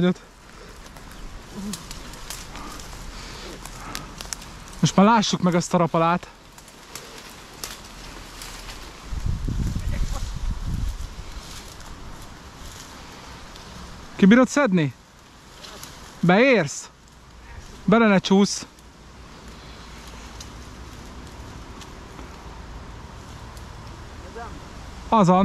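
Grass and leaves rustle as someone pushes through thick brush.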